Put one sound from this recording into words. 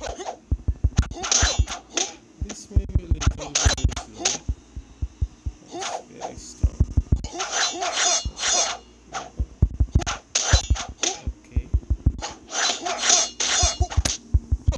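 A chain-and-sickle weapon and an axe clash with sharp metallic hits.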